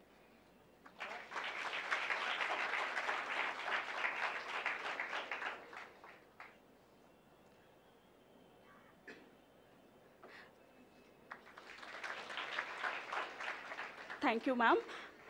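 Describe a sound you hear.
An audience applauds in a hall.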